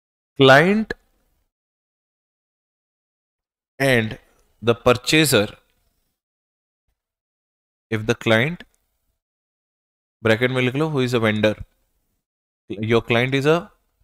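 A man lectures calmly into a close microphone, in short phrases with pauses.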